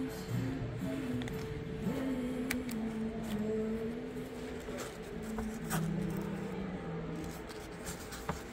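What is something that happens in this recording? Fabric rustles as a handbag is handled.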